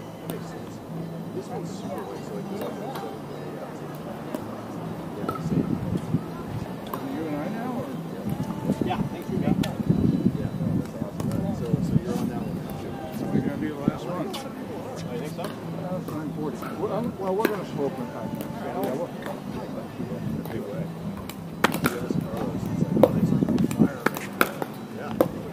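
Paddles pop sharply against a plastic ball outdoors.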